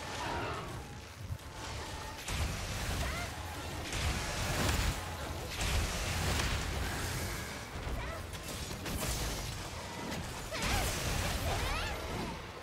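A sword slashes and clangs against a monster's hide.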